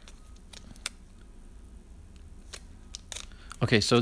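A plastic card sleeve crinkles softly as it is handled.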